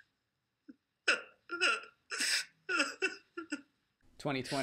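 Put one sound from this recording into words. A man sobs loudly in short gasps.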